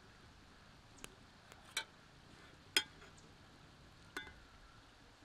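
A metal spoon clinks against a metal ladle.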